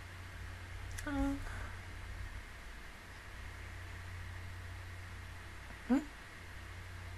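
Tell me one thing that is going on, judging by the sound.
A young woman gives a short, soft laugh close to a microphone.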